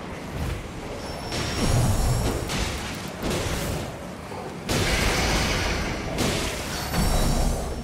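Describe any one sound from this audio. A crackling magic blast hisses and bursts.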